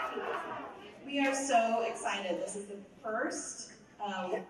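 A woman speaks through a microphone, loud over the speakers in a large hall.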